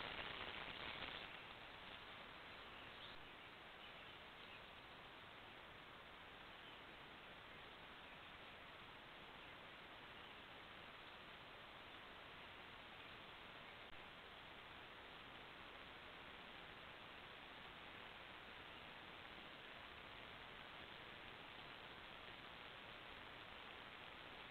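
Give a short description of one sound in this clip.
A deer steps softly through brush nearby.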